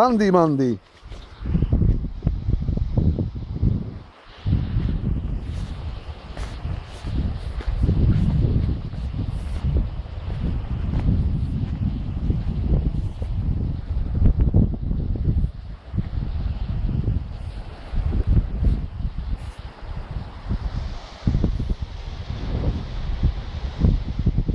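Footsteps in sandals tread on dry grass outdoors in wind.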